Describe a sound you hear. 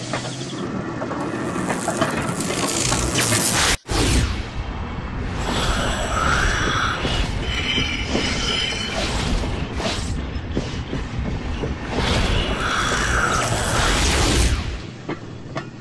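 A cart rumbles and clatters along metal rails.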